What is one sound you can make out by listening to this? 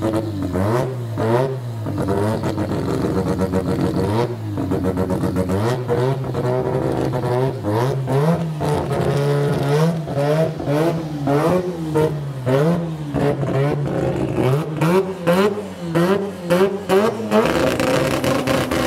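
A drag car's engine idles loudly and roughly.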